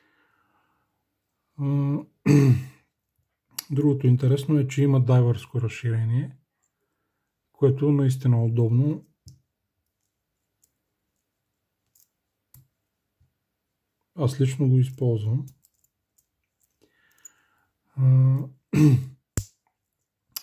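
A metal watch clasp clicks.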